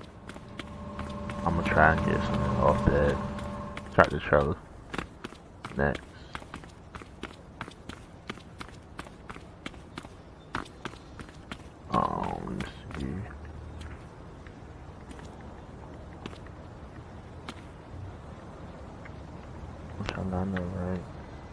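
Footsteps patter quickly on a hard surface.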